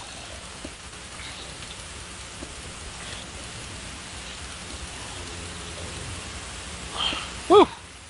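Stone blocks thud as they are placed.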